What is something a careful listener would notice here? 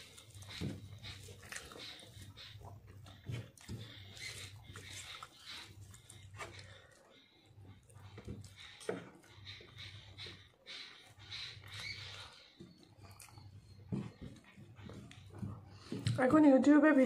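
A young woman chews and smacks food close by.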